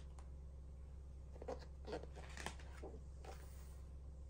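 A paper page rustles as it is turned.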